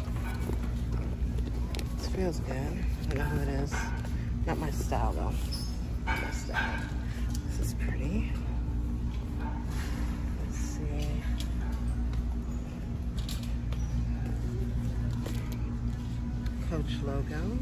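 Leather handbags rustle and creak as a hand handles them.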